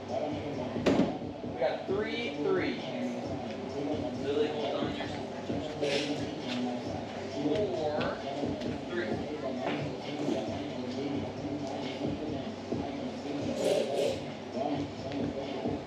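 Children chatter nearby in an echoing indoor hall.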